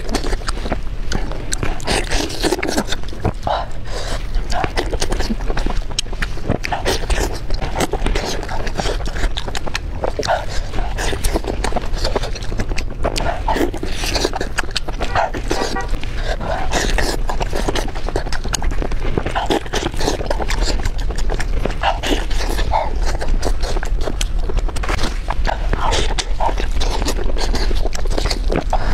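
A young woman chews and slurps food loudly and close to a microphone.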